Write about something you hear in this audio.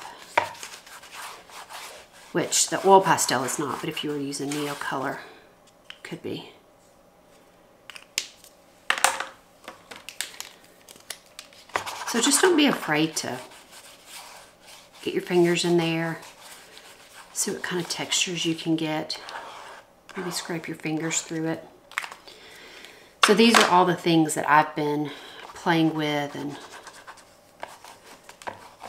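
A felt-tip marker scratches and squeaks across paper.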